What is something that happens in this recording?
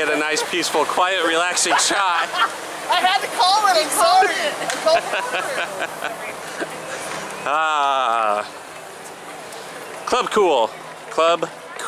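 A crowd chatters in the background outdoors.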